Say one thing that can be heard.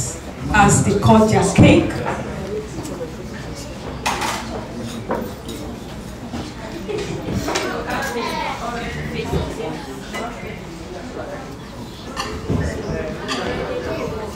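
Men and women chat and murmur nearby.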